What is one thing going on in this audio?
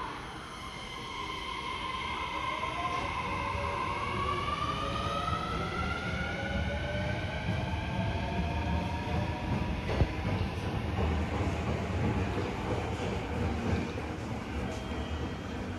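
A train rumbles along the tracks as it leaves.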